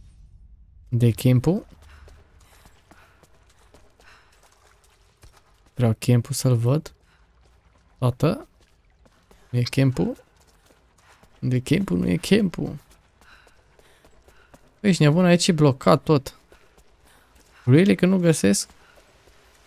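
A young man talks with animation in short bursts through a close microphone.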